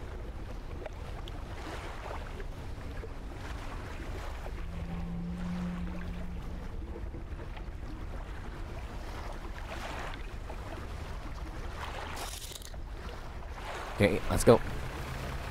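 Wind and sea waves rumble steadily.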